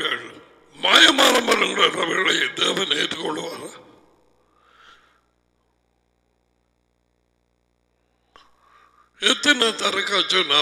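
A middle-aged man speaks with animation through a headset microphone, with pauses.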